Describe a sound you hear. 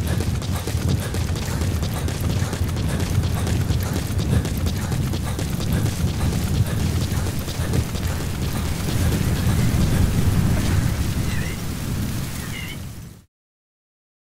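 Footsteps run quickly over gravel and dirt.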